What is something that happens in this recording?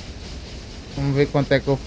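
A young man speaks loudly and with animation into a microphone.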